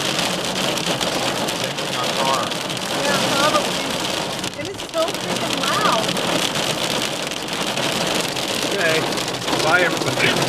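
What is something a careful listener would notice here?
Heavy rain and hail drum hard on a car's windscreen and roof.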